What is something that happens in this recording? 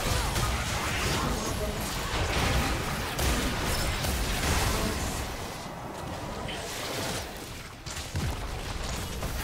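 Magic spell blasts crackle and boom in a busy fight.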